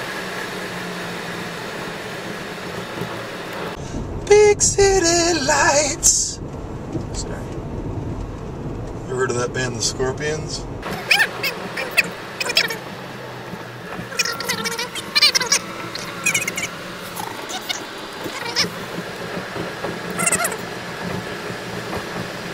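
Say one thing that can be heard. A car drives along a road with a low hum from inside the cabin.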